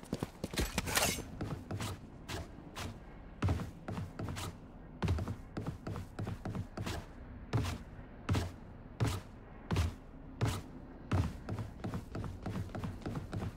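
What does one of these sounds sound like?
Quick footsteps tap on hard ground.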